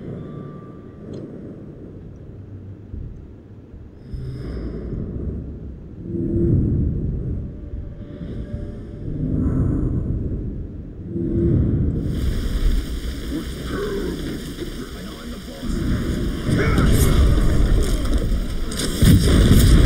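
Low, rumbling game music and effects swell and fade.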